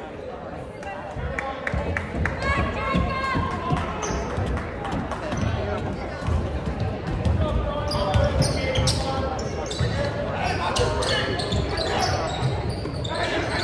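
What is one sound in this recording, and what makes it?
A basketball bounces with dull thumps.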